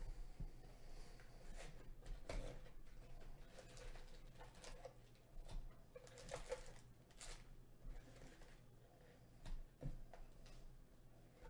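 Foil card packs rustle and crinkle as hands handle them.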